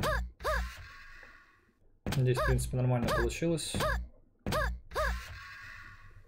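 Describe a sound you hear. Short springy jump sounds chirp again and again.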